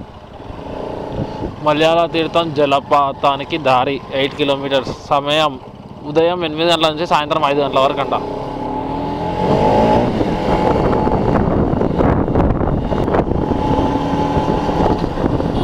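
A motorcycle engine hums steadily as the bike rides along.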